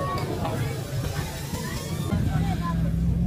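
Tyres spin and spray sand.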